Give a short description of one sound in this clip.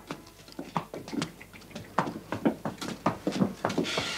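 Hooves clop on a hard floor as a horse walks in a circle.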